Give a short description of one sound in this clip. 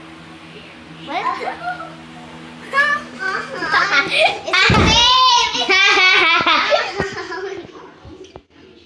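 A young girl shouts excitedly close by.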